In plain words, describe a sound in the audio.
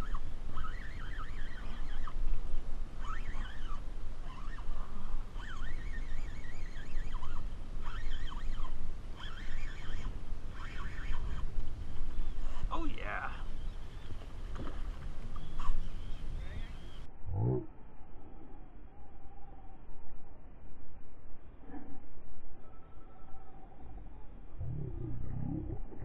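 Wind blows against the microphone on open water.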